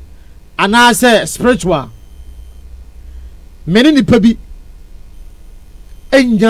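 A young man speaks with animation into a close microphone, in short bursts.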